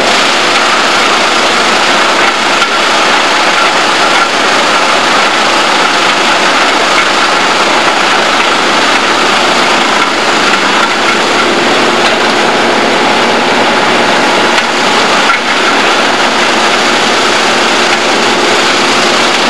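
A heavy diesel engine runs loudly and steadily.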